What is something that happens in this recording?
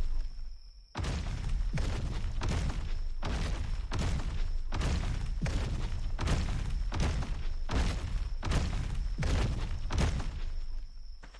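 Heavy footsteps of a large creature thud in a steady rhythm.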